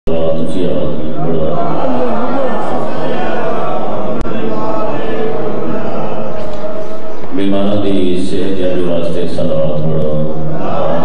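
A man speaks forcefully into a microphone, heard through a loudspeaker in an echoing space.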